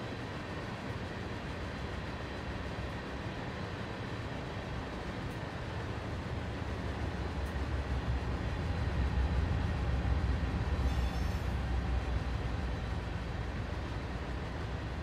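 A second train rolls past close by, its rumble swelling and then fading.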